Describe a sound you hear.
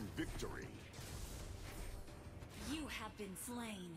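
Game sound effects of magic blasts and strikes clash rapidly.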